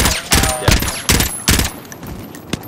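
Rifle shots crack in quick succession.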